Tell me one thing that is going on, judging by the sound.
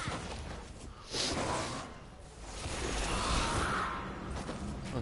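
Electric crackling bursts out loudly.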